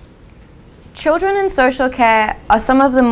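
A young woman begins speaking clearly into a microphone.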